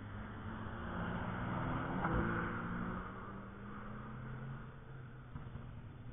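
A race car engine roars past in the distance and fades away.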